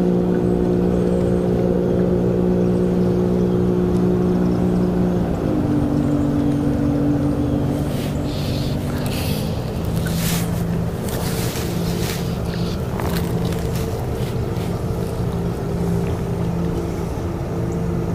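A small boat motor hums steadily, shifting pitch partway through.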